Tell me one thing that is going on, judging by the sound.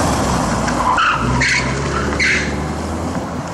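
Tyres squeal sharply on pavement.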